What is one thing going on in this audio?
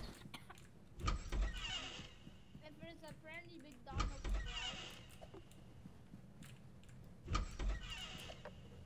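A door creaks open with a heavy thud.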